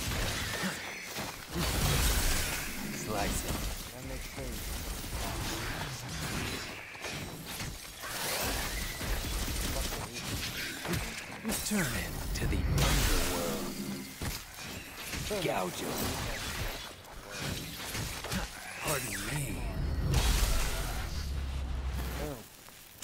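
Sword slashes and impacts clash with loud bursts.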